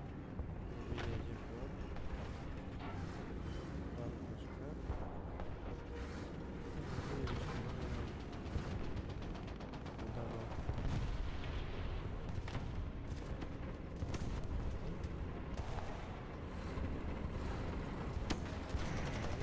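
Tank cannons fire with sharp booms.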